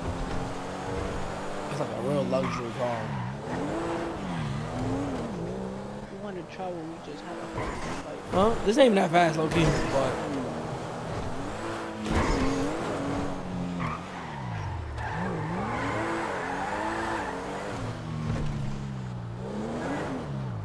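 A car engine revs and changes gear over and over.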